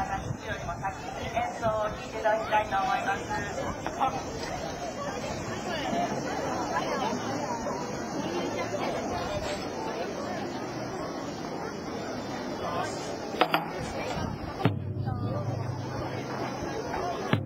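Children and adults chatter and call out in the background outdoors.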